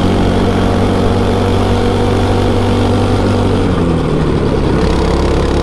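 A go-kart engine buzzes loudly up close, dropping in pitch as the kart slows into a corner.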